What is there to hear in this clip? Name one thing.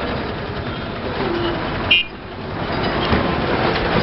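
A motorbike rides by.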